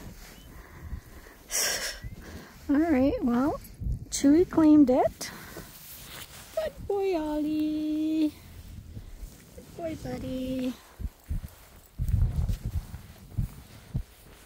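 Footsteps crunch on dry grass.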